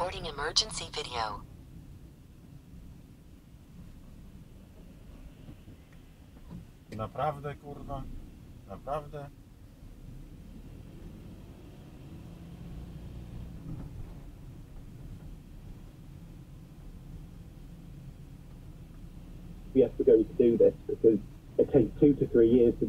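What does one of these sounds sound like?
Tyres rumble on the road.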